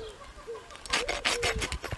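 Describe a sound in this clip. A rasp files a horse's hoof in quick strokes.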